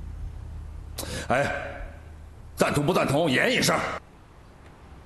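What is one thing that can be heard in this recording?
A middle-aged man speaks sternly.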